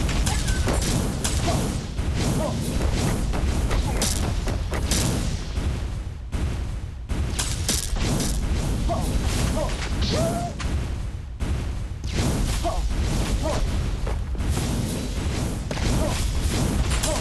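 Game sound effects chime and zap in quick bursts.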